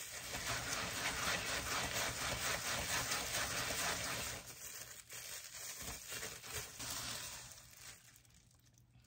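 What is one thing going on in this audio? A plastic bag rustles and crinkles close by.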